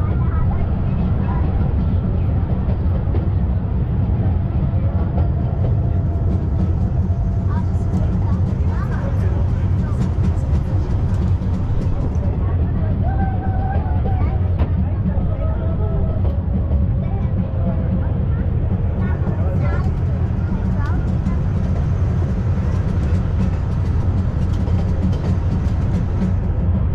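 A mountain train rumbles steadily along its track.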